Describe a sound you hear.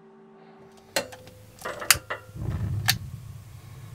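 A gas stove igniter clicks.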